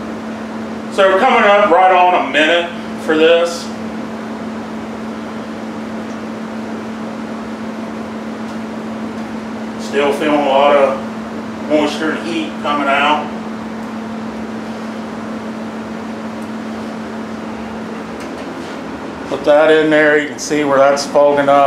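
A man speaks calmly and close by, in short bursts.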